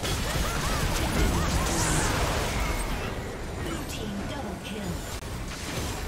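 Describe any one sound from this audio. Magic blasts and sword clashes ring out in a busy video game fight.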